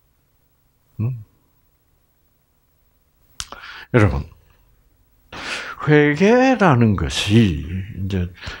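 An elderly man speaks calmly into a headset microphone.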